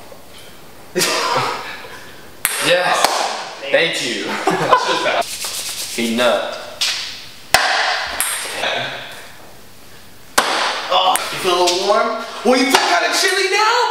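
Young men talk and laugh loudly nearby.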